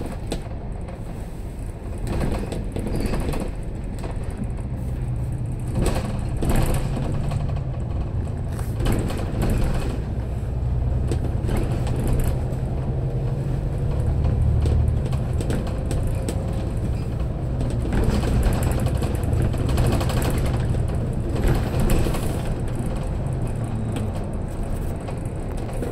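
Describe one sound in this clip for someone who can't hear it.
A vehicle's engine rumbles steadily as it drives.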